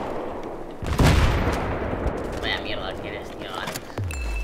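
A distant explosion booms and rumbles away.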